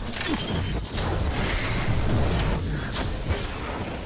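An electric blast crackles and hums.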